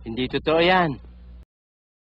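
A man speaks briefly.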